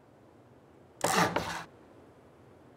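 A heavy stone block thuds and scrapes into place.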